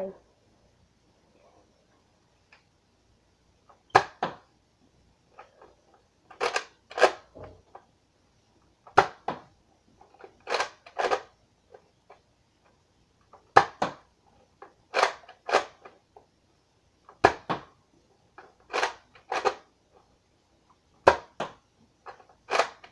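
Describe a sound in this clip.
A toy blaster's plastic slide clacks as it is pulled back and pushed forward.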